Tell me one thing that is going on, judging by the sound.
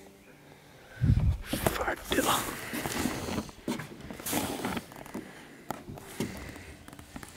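A young man talks close by, outdoors.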